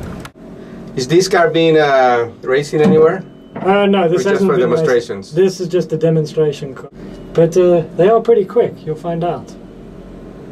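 A man speaks calmly inside a car.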